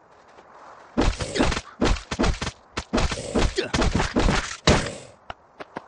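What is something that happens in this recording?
Heavy blows thud and clash rapidly in a fight.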